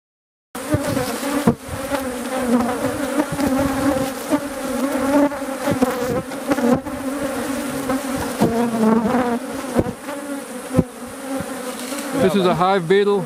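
A swarm of bees buzzes loudly and steadily close by.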